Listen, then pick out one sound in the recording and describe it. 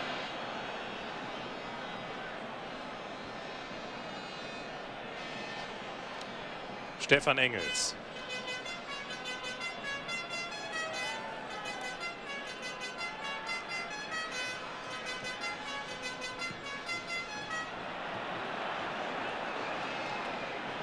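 A stadium crowd murmurs and cheers in the distance, in a large open space.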